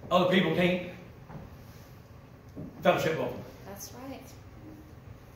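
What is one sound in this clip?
An elderly man preaches with feeling.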